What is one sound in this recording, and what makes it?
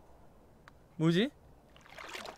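A float plops into water.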